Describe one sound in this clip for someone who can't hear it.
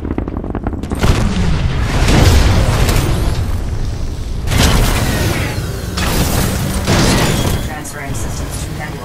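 A large mech's heavy machinery rumbles deeply.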